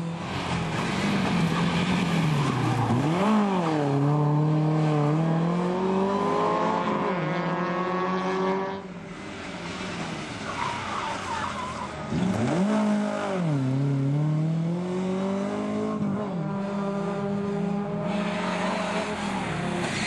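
A rally car engine revs hard, rising and falling through gear changes.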